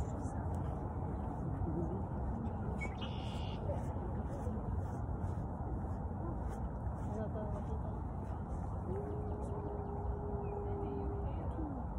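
Footsteps swish softly on grass.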